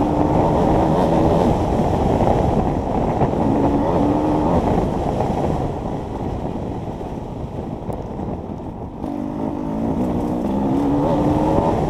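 A dirt bike engine roars close by, revving up and easing off.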